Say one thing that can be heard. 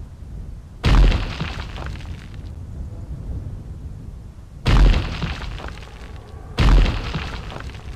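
Fiery spell blasts burst with a loud whoosh, again and again.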